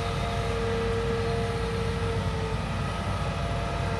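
Sand pours from an excavator bucket into a truck bed.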